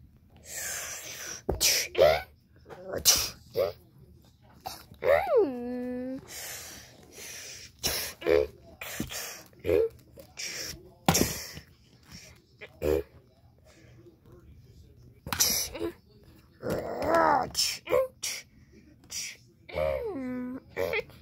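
A plastic toy knocks and rattles.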